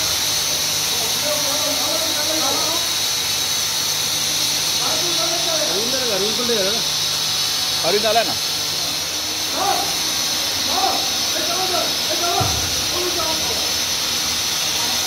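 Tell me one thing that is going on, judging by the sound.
Men call out to one another nearby.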